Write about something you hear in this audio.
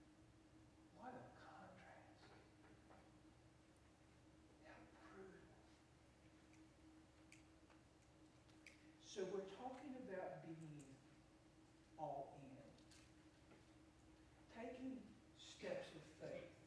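An elderly man speaks calmly in pauses, heard through a microphone in a large echoing hall.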